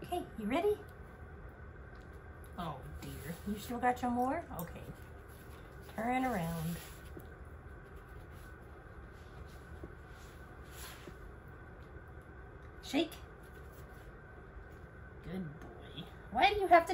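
A woman speaks to a dog in a high, coaxing voice close by.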